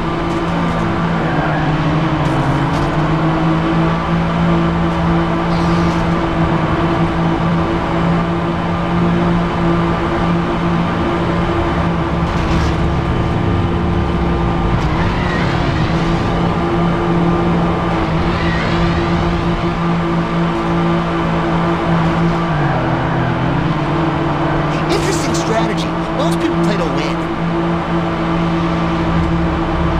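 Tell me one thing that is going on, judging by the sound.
Racing car engines whine steadily at high speed.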